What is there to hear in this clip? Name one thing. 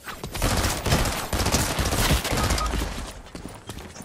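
Weapon swings whoosh and hit with heavy thuds.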